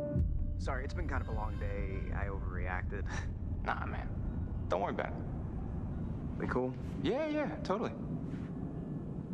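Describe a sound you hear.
Another young man answers calmly.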